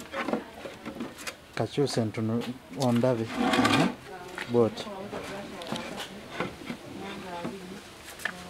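A brush scrapes across wood.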